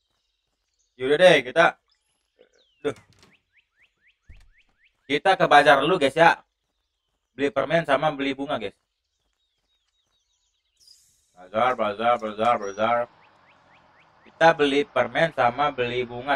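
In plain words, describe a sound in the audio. A young man talks casually and animatedly into a close microphone.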